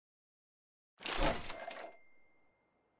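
A heavy metal safe door clanks shut.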